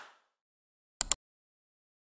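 A mouse button clicks.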